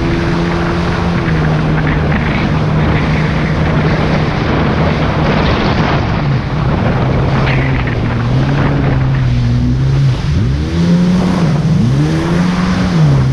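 A jet ski engine drones loudly, rising and falling in pitch as it revs.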